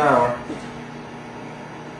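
A newspaper rustles as its pages are handled.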